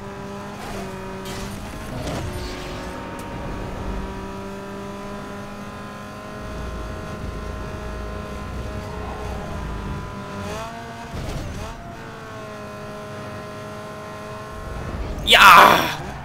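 A racing car engine roars at high speed, its pitch shifting as gears change.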